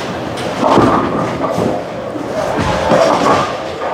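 A bowling ball rolls down a lane and crashes into pins.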